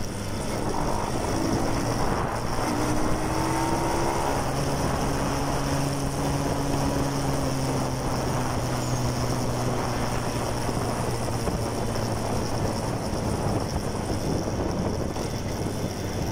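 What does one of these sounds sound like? A motorcycle engine hums steadily, shifting pitch now and then.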